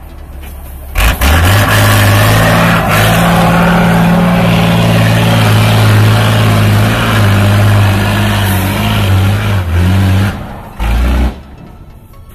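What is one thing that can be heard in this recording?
A truck's diesel engine roars loudly as it revs hard up a slope.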